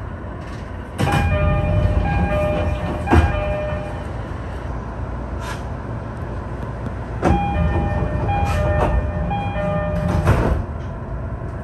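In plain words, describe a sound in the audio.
A man calls out loudly and crisply nearby.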